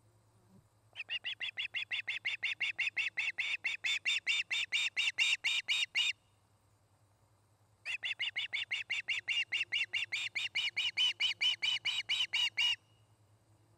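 A young osprey calls close by in rapid, piercing chirps, in two long bursts.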